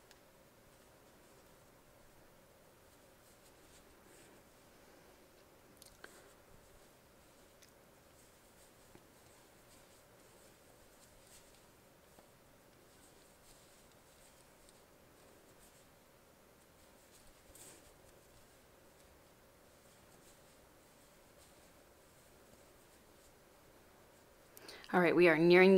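Wooden knitting needles tap and click softly against each other.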